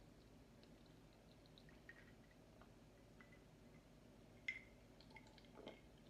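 A woman sips and swallows a drink.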